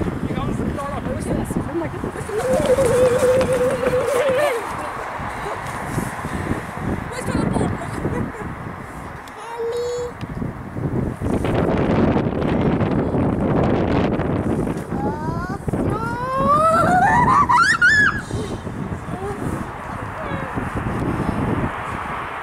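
Strong wind gusts buffet the microphone outdoors.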